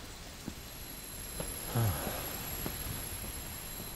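Heavy debris crashes and shatters.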